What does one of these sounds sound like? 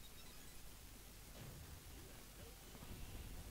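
A short electronic game sound effect plays.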